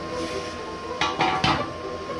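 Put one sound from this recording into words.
Metal pipes clank as they are handled.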